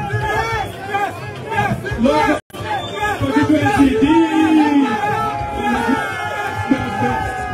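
A large crowd sings loudly outdoors.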